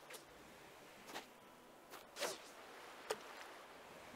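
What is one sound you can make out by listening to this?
A fishing line is cast with a swish and a plop into water.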